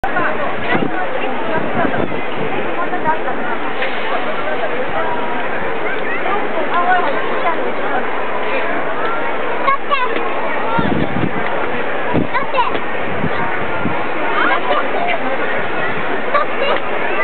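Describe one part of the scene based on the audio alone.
A large outdoor crowd chatters and calls out all around, close by.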